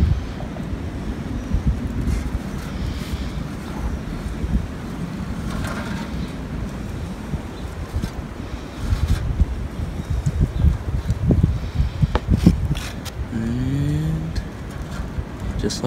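Sandpaper scrapes back and forth over a rough surface.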